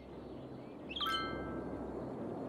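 A short bright chime rings.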